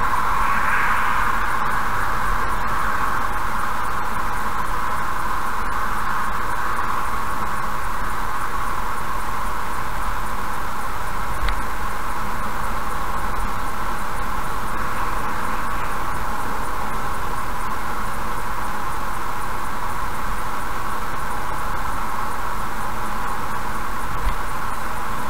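Tyres roar steadily on a highway, heard from inside a moving car.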